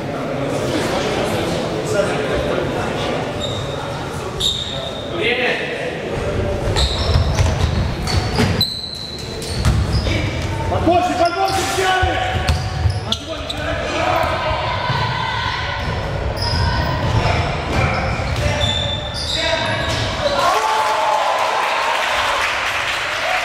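Voices of young players and spectators echo in a large hall.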